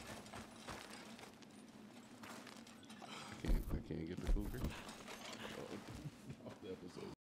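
Footsteps crunch slowly on rocky ground.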